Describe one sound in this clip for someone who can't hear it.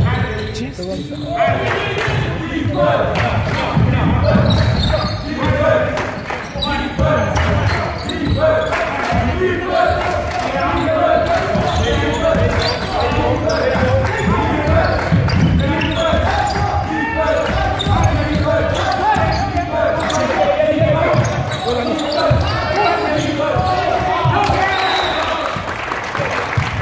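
Young men call out and shout to each other in a large echoing hall.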